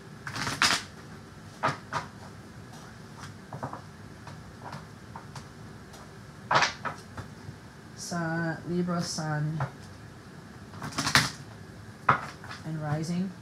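Cards riffle and slap together as a deck is shuffled by hand.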